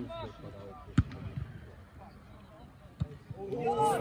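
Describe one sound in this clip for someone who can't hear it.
A football thuds as it is kicked on the pitch.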